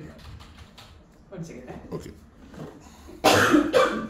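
Bare feet step softly on a hard floor.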